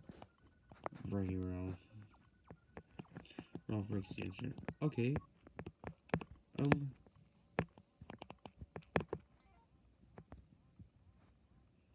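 Short electronic menu blips sound from a game console.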